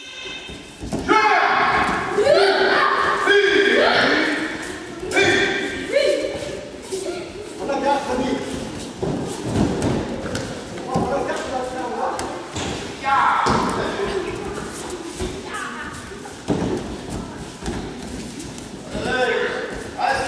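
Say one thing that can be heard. Children's voices call out and chatter in an echoing hall.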